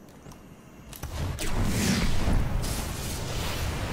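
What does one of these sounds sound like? A loud blast booms and rumbles.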